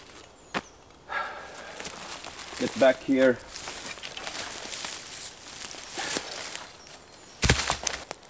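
Footsteps crunch over dry leaves and twigs.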